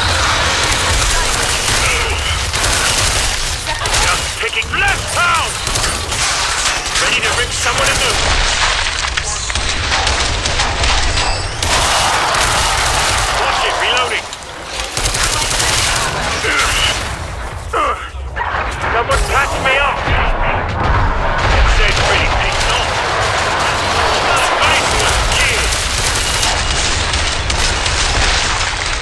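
Creatures screech and growl.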